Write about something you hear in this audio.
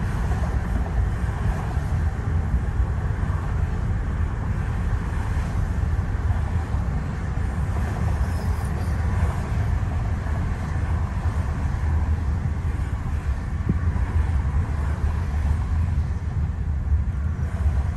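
Road noise rumbles steadily from inside a moving car.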